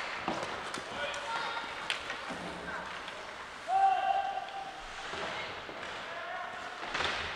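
A young player shouts across an echoing rink.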